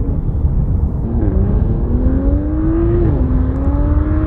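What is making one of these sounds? A car engine hums as a car drives by in the distance.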